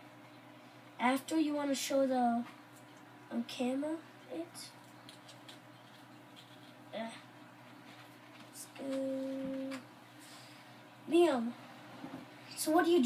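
A young child talks and exclaims nearby.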